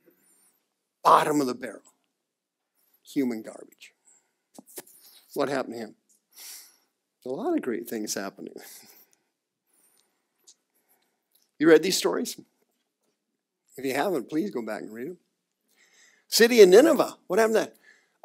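A middle-aged man speaks with animation through a headset microphone, in short bursts with pauses.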